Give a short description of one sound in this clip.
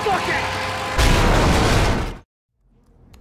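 A gunshot bursts loudly.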